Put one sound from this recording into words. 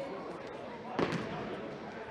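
A ball thuds when kicked, echoing in a large hall.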